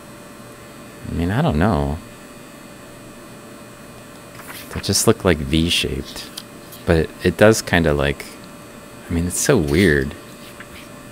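A man speaks calmly into a microphone, in short bursts.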